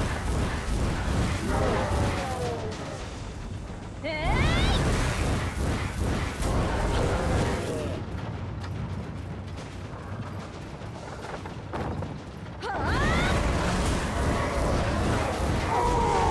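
Weapons clash and blasts crash over and over in a fight.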